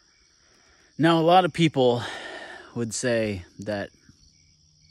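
A young man speaks with animation close to the microphone, outdoors.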